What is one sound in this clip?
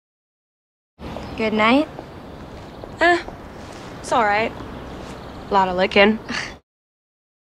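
A young girl speaks calmly nearby.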